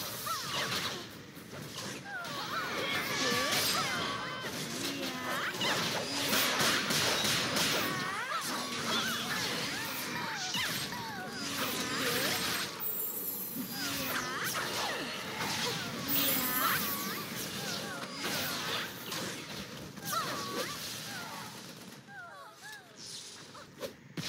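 Magic blasts and weapon strikes crackle and clash in quick bursts.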